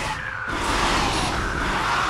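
Explosions burst.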